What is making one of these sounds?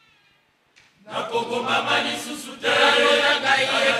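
A choir of women and men sings loudly in a large hall.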